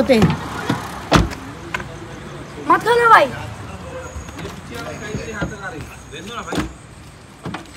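A young boy talks loudly nearby.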